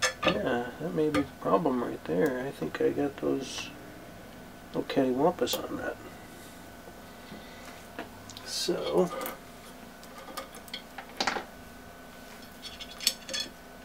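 Small metal parts click and clink against each other.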